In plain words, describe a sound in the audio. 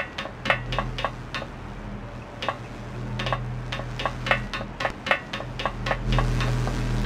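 Footsteps clack quickly on a hard floor.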